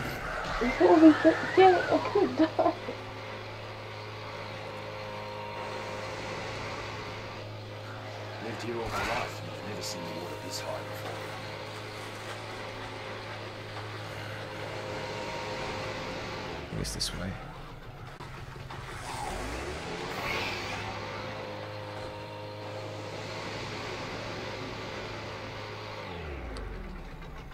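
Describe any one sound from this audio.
A small boat engine hums steadily.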